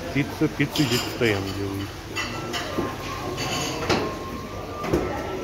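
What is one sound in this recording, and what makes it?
Metal serving utensils clink against trays.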